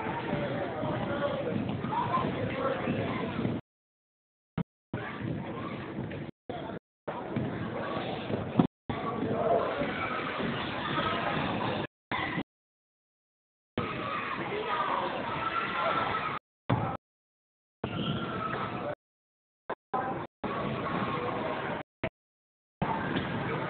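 Young girls shout and call out in a large echoing gym.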